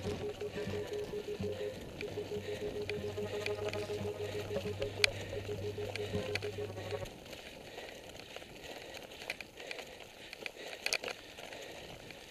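A bicycle rattles and clatters over cobblestones.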